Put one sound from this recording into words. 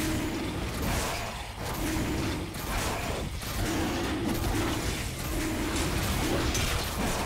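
Game spell effects and blows crash and whoosh rapidly in a fight.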